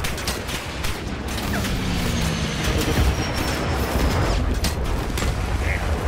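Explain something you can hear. Explosions boom amid a battle.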